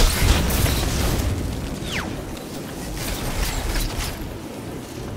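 Gunshots crack and boom in quick bursts.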